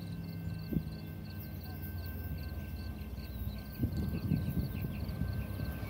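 A train rumbles as it approaches.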